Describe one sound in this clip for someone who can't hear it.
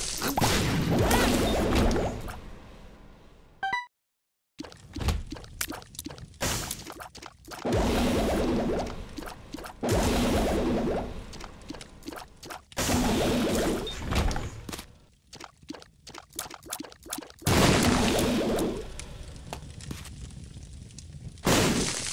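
Small video game shots pop in quick succession.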